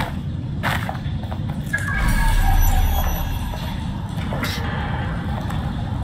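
Footsteps crunch over rubble and broken concrete.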